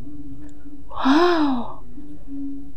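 A young woman exclaims briefly, close by.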